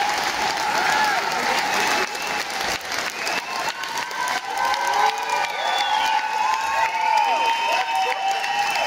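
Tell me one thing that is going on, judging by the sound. A crowd cheers and screams loudly in a large echoing hall.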